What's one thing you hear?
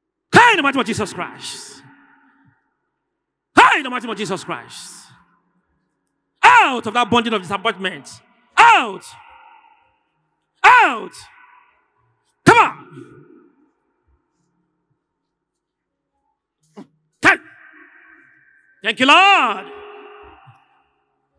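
A man shouts in short bursts through a microphone, echoing across a large open space.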